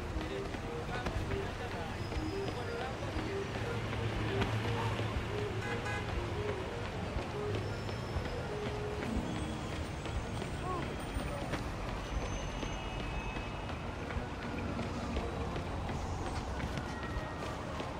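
City traffic hums steadily nearby.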